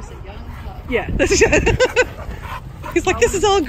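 Dogs growl and snarl as they play.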